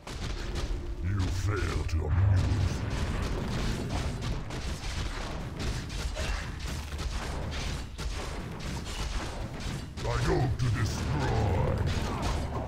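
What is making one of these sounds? Weapons clash and clang in a busy fight.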